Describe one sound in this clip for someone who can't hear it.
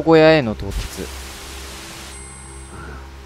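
Television static hisses.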